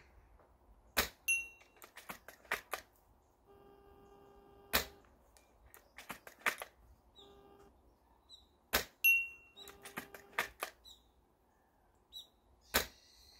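Sharp shots crack outdoors, one after another.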